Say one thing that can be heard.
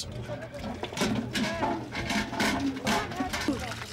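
Metal buckets clank together.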